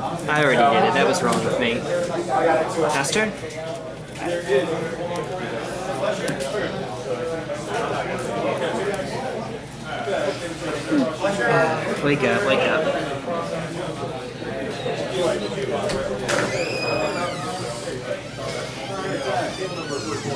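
Playing cards slap and slide softly on a mat.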